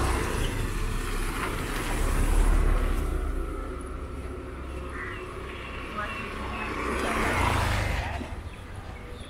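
Motorbikes pass along the street.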